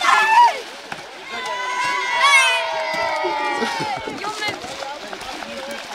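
Water splashes as children wade in the shallows.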